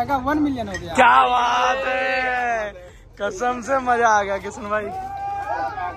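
A young man shouts and laughs excitedly close by.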